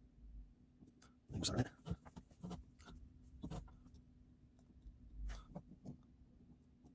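Small metal parts click and tap softly.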